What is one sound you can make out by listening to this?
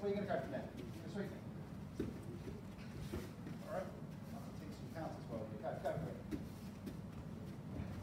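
Bare feet shuffle and thud on foam mats.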